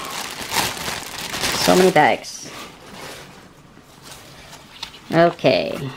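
Tissue paper rustles softly.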